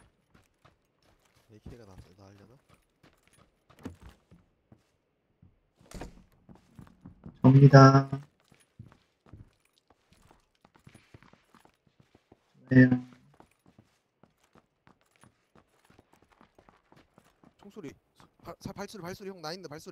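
Footsteps tread softly across hard floors and up wooden stairs.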